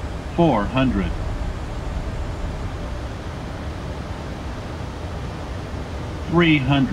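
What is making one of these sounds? Jet engines drone steadily in the background.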